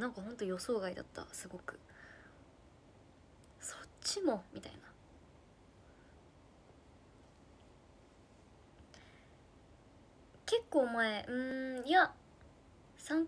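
A young woman speaks calmly and close by, in short bursts with pauses.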